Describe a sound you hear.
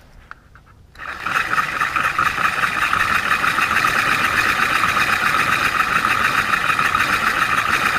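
A handheld device gives out loud, steady crackling static.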